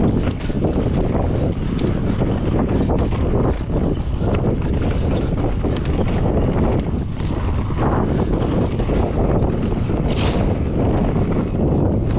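Dry grass brushes and swishes against a bicycle.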